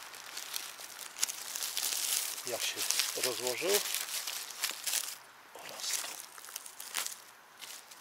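Dry leaves rustle under a hand.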